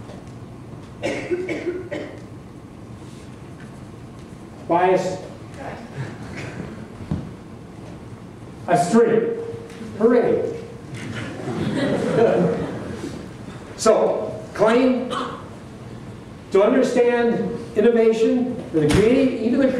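An older man speaks calmly through a microphone in a large hall, pausing between phrases.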